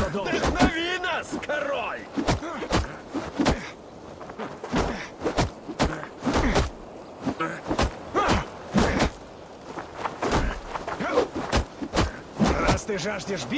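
Swords and axes clash and strike in a fight.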